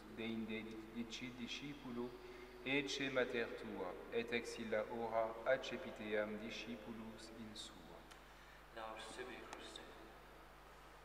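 A man chants slowly through a microphone in a large echoing hall.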